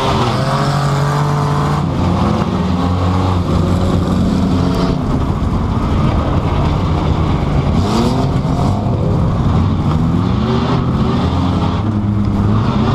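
The car body rattles and bangs over rough ground.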